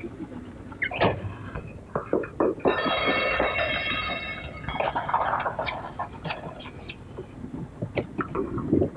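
Horse hooves clop on a street.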